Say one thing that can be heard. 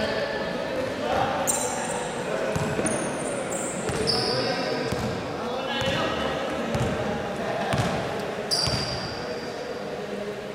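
Players' footsteps thud on a wooden floor.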